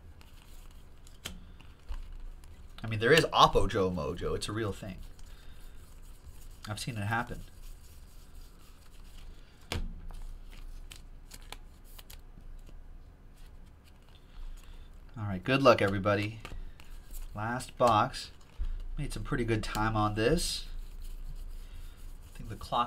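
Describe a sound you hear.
Trading cards shuffle and flick between fingers.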